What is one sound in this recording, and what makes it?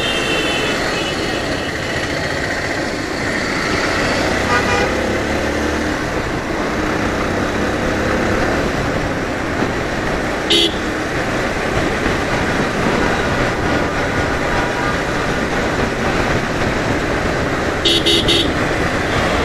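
Vehicle horns honk briefly.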